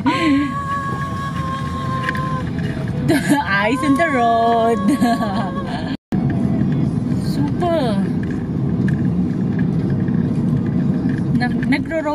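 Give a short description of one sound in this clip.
A car engine hums steadily from inside a moving car.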